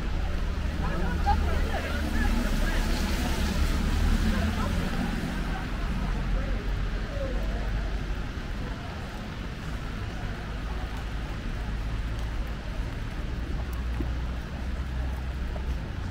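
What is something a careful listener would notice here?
Car tyres hiss on wet tarmac.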